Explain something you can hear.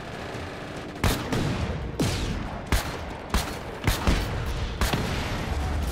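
Loud explosions boom one after another.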